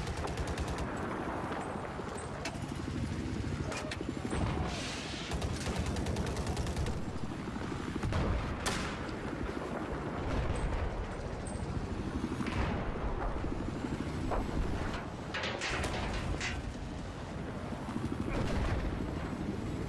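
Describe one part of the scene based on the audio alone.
Explosions boom in the distance.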